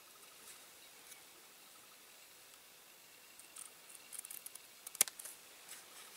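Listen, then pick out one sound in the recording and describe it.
A metal blade clicks against a small part held between fingers.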